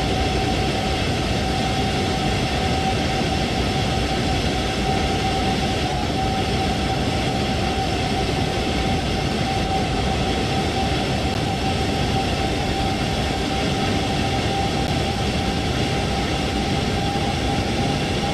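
An electric train hums and rumbles steadily along the rails at speed.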